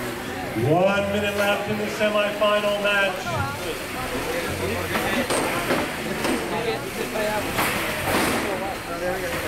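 A crowd of spectators chatters and cheers nearby.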